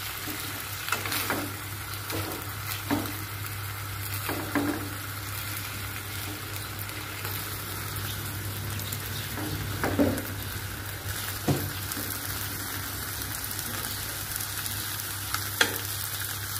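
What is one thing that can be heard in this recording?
Metal tongs clink and scrape against a frying pan.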